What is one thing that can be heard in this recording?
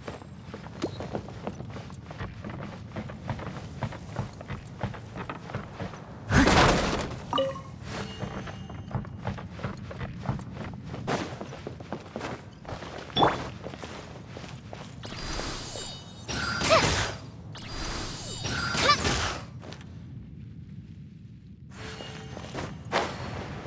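Footsteps patter quickly over hard ground.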